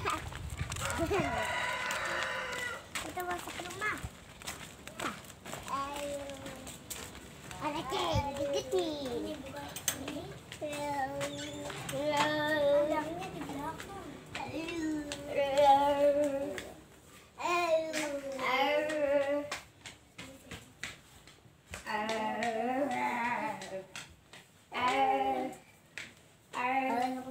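Young children talk and call out excitedly close by.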